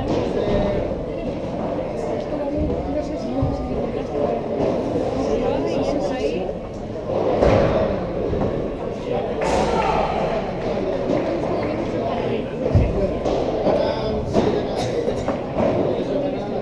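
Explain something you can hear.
Players' shoes squeak and scuff on the court.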